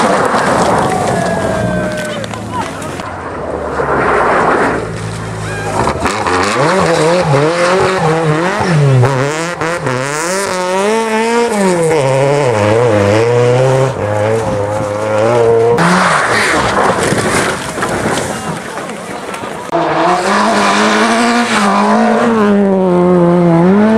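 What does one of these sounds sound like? A rally car engine roars and revs up and down as it races past.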